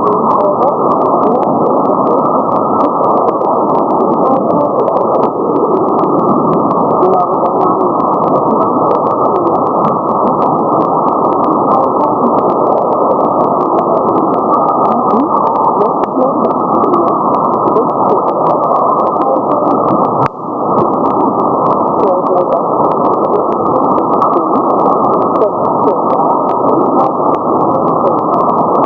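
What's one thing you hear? Sharp crackles pop in the radio static.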